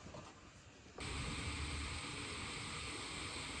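A samovar hisses steadily outdoors.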